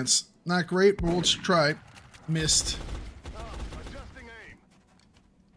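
Gunfire bursts loudly in a game.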